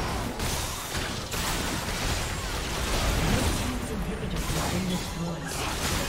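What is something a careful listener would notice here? Spell effects and attacks crackle and burst in quick succession.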